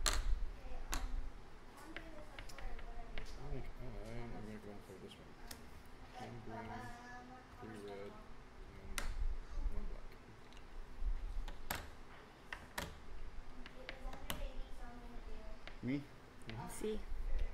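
Plastic game chips click against each other and the table.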